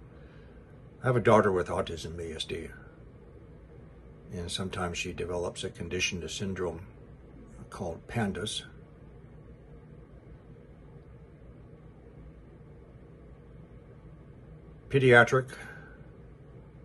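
An elderly man speaks calmly and thoughtfully close to a microphone, with long pauses.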